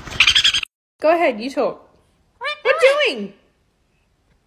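A parrot talks in a squeaky voice.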